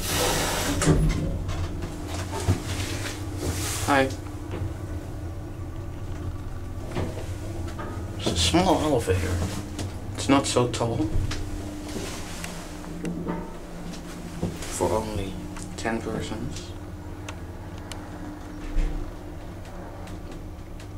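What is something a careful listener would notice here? An elevator car hums as it travels down.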